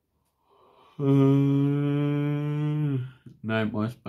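A man yawns loudly, close by.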